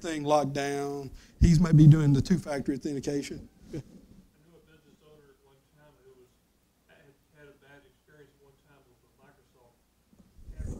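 A man speaks steadily into a microphone, heard through a loudspeaker in a large room.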